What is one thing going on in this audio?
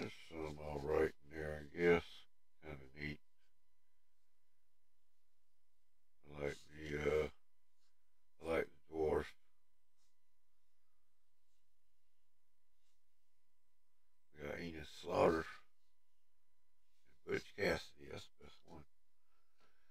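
An elderly man talks calmly in short bursts, heard through a microphone over an online call.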